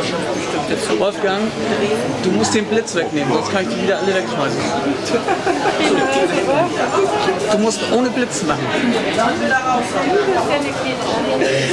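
A woman talks softly and close by.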